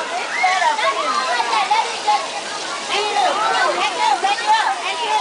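Young children shout and chatter excitedly nearby.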